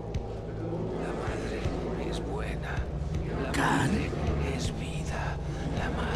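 A man speaks fervently, as if preaching.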